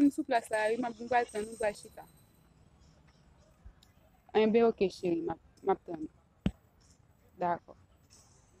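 A young woman talks on a phone close by, with animation.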